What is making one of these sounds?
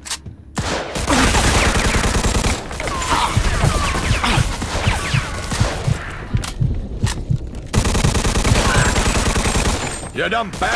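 A submachine gun fires rapid bursts of shots in a large echoing hall.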